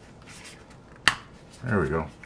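A small plastic case clicks as it is handled.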